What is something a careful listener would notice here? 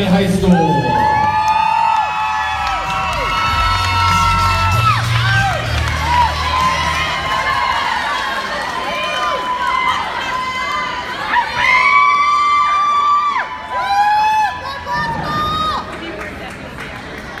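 A crowd of girls screams and cheers loudly in a large echoing hall.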